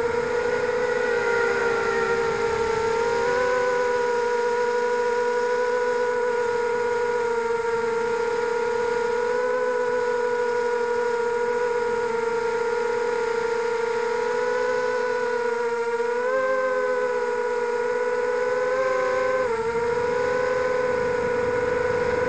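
A drone's propellers whine steadily, with the pitch shifting briefly now and then.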